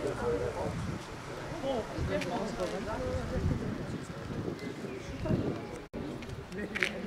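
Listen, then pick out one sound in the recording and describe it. An older man speaks calmly nearby, outdoors.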